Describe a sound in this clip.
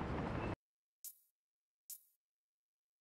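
A menu clicks softly as an option changes.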